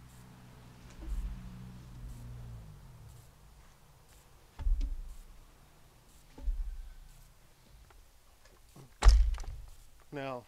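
Heavy logs thud as they roll against each other.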